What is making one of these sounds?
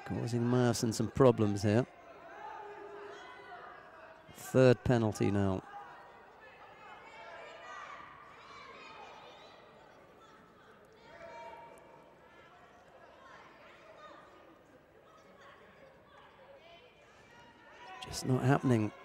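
Spectators shout loudly and encouragingly in a large echoing hall.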